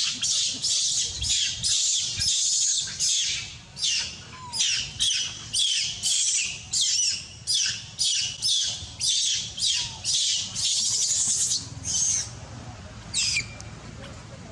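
A young macaque screams in shrill, high-pitched bursts.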